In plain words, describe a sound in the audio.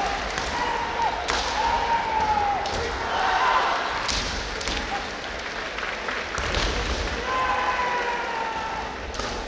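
Young men shout long, drawn-out cries in a large echoing hall.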